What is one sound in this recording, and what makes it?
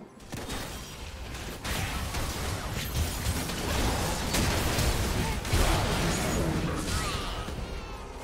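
Video game spell effects crackle and burst rapidly in a busy fight.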